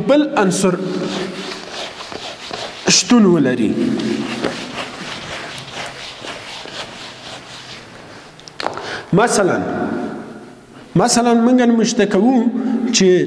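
A man speaks calmly, close by, in a slightly echoing room.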